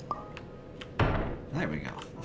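A wooden toy block drops and thuds onto a floor.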